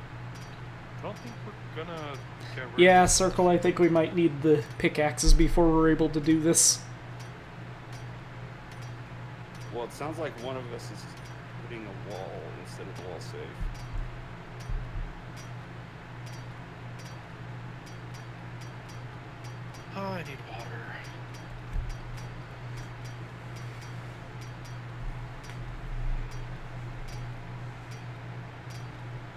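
A club bangs repeatedly against a metal safe.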